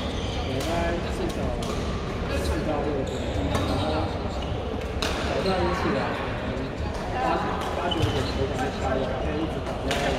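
Several men and women talk and call out in a large echoing hall.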